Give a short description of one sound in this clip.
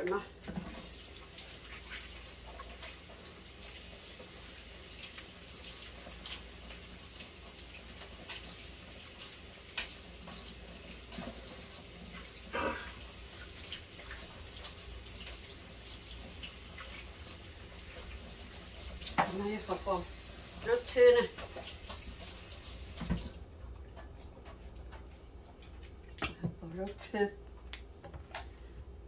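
Dishes clink and clatter in a sink.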